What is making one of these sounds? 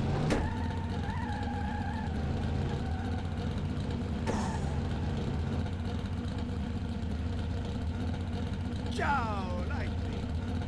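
A race car engine hums low and steadily, revving and idling.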